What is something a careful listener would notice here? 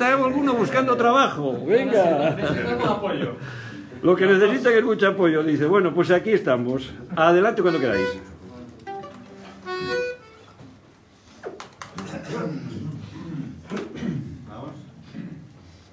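An accordion plays along.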